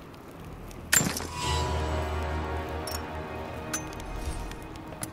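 A game menu gives a bright, ringing chime.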